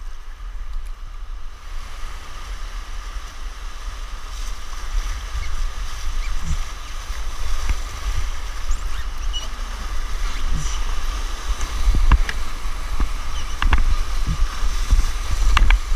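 Water splashes and thumps against a canoe's hull.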